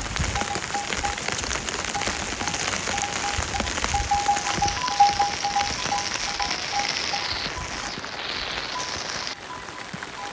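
Footsteps thud softly on a muddy path.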